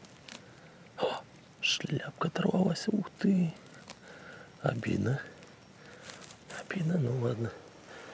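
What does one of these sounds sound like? Fingers rustle through dry pine needles and moss close by.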